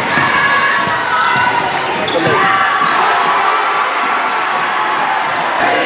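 A crowd cheers in a large echoing gym.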